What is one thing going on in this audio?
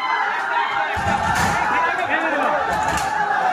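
A metal shutter door rattles and bangs as an elephant pushes against it.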